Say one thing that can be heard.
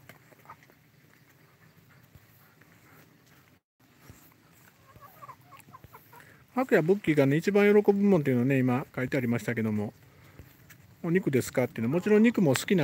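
Hens cluck softly.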